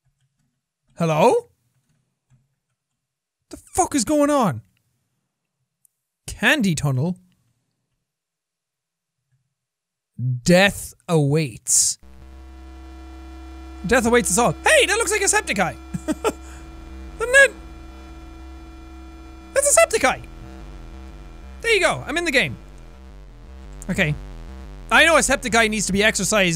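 A young man talks into a close microphone in short bursts, with animation.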